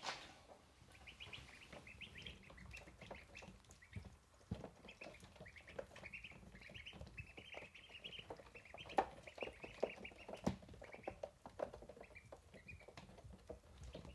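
Ducklings peep softly and steadily.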